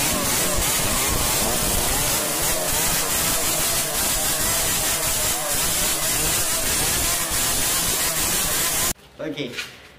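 A motorcycle engine revs loudly and roars.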